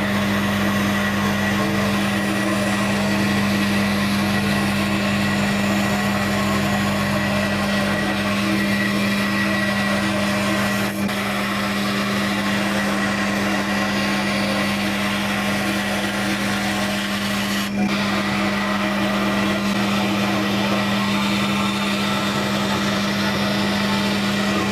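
A scroll saw hums and buzzes steadily as its blade cuts through thin sheet material.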